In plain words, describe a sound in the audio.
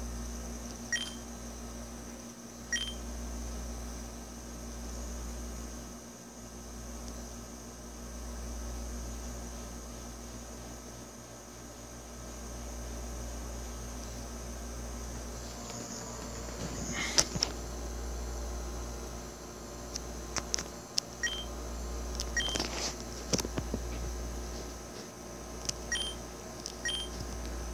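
Short electronic beeps chime now and then.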